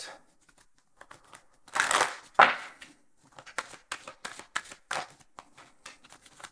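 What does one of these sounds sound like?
Playing cards flick and rustle in a man's hands.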